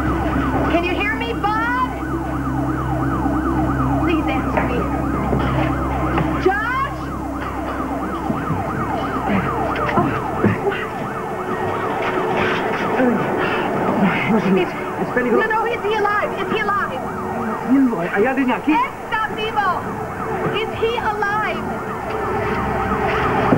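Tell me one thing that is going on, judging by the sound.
A woman shouts urgently nearby.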